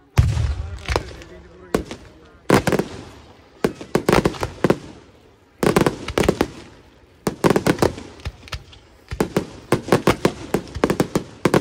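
Fireworks fountains hiss and crackle outdoors.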